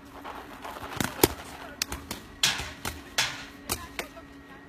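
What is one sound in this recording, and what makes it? Paintball markers fire in sharp, scattered pops.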